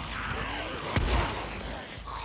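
A gun fires a loud shot.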